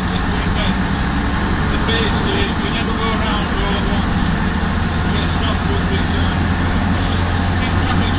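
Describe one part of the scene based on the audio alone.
A woman talks and laughs nearby.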